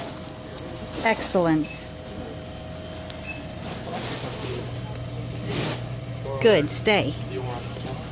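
A dog whines briefly, close by.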